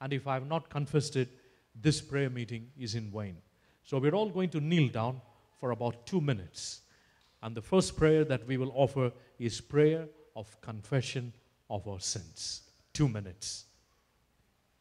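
A man speaks through a microphone in an echoing hall.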